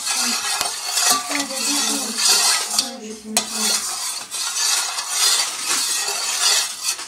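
A spoon stirs and swishes through water in a bowl.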